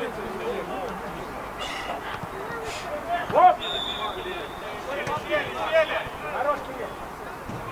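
Several men talk and call out at a distance outdoors.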